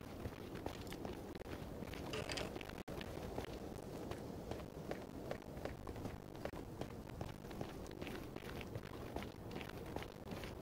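Footsteps crunch steadily on stone.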